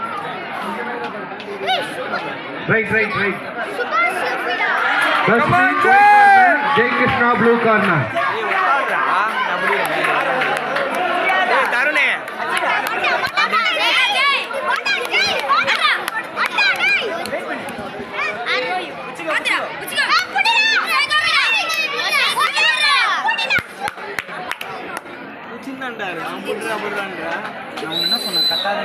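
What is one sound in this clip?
A crowd of people chatter and call out.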